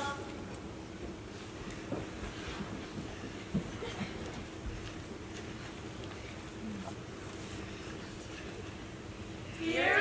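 An audience murmurs and rustles quietly in a large hall.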